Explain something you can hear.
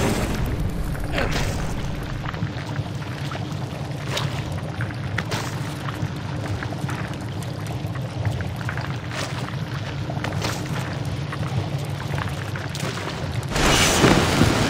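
Water pours and splashes steadily.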